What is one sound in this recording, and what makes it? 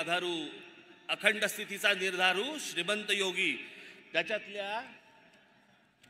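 A man speaks forcefully through loudspeakers, echoing outdoors.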